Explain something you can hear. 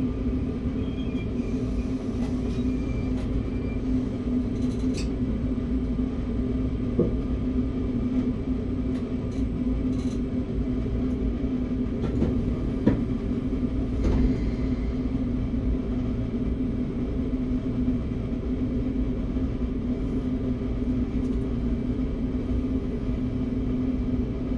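A train's motor hums steadily.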